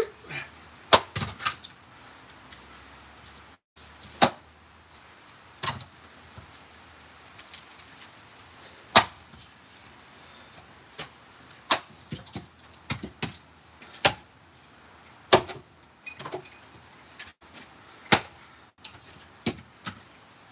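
Split pieces of wood thud onto the ground.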